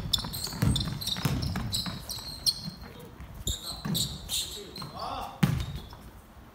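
Basketball players' sneakers squeak on a wooden court in an echoing gym.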